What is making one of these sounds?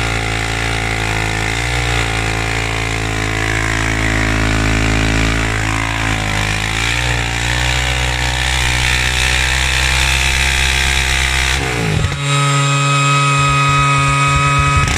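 An engine roars loudly at high revs, its pitch wavering and then shifting abruptly.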